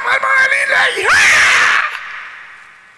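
An older man laughs into a microphone.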